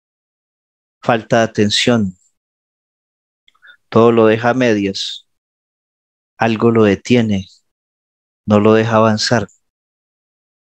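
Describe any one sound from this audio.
A man speaks calmly through a headset microphone over an online call.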